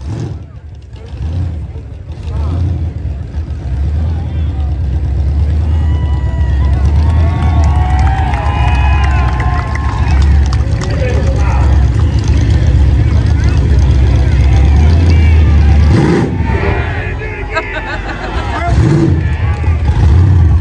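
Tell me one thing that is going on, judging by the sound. A pickup truck's engine roars at high revs during a burnout.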